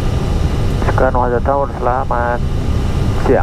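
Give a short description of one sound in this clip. A young man speaks calmly through a headset radio.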